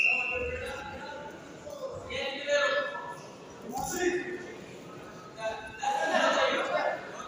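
Men shout from the sidelines in an echoing sports hall.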